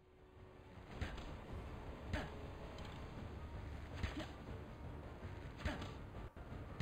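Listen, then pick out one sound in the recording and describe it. Weapon swings and hits sound in short bursts.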